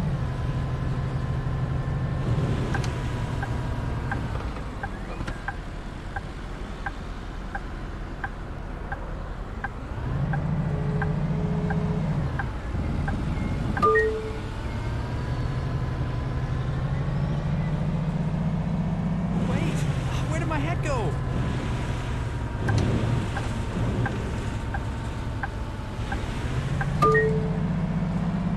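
A bus engine hums and rises and falls as the bus drives.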